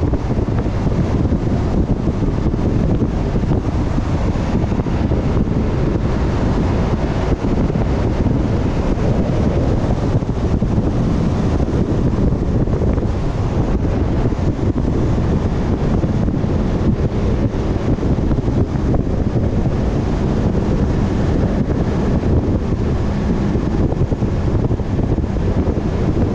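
A vehicle's engine hums steadily as it drives along.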